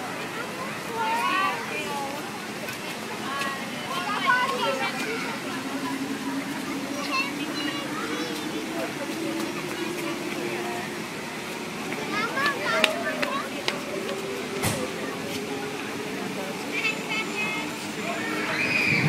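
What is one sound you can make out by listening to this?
Adults and children chatter in the background outdoors.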